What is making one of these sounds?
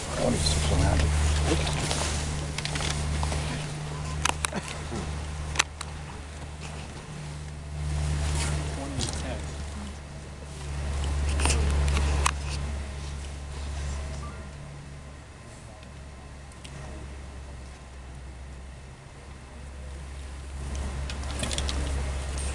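A crowd of spectators murmurs quietly nearby.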